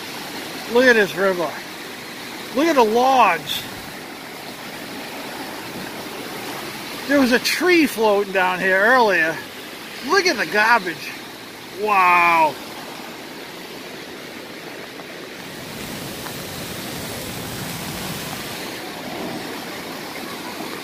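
Floodwater rushes and churns steadily.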